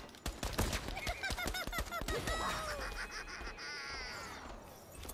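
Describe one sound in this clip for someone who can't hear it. Electronic game chimes ring out.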